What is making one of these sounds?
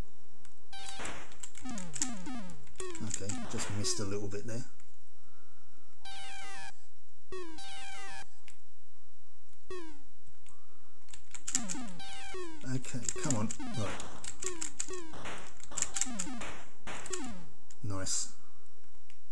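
An eight-bit home computer game plays descending electronic zaps as shots fire.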